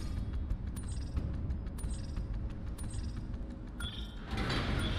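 A countdown timer beeps once each second.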